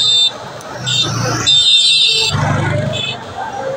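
A motorbike engine drones as it passes close by.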